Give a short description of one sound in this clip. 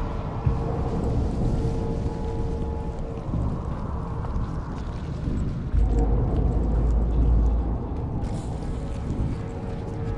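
Footsteps thud on wooden boards and stairs.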